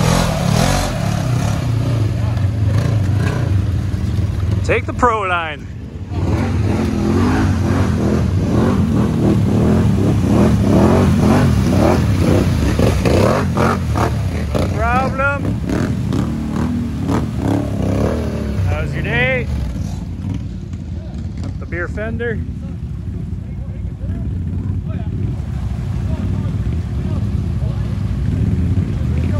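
Tyres churn and splash through thick mud.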